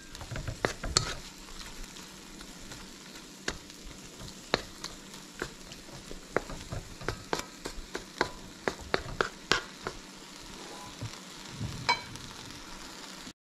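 A wooden spatula scrapes and taps against a metal pan.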